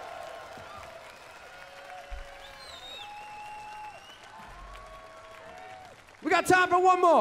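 A large crowd cheers outdoors.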